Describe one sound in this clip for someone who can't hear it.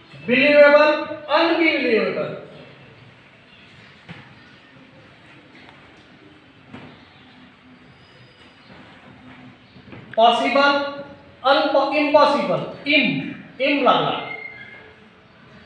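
A man speaks loudly and clearly, as if teaching a class.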